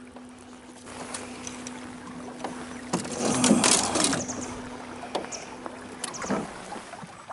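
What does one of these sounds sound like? Fishing rods clatter against each other as they are handled.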